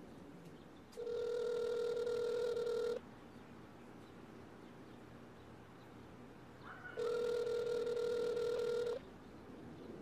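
A smartwatch rings with a steady electronic tone for an incoming call.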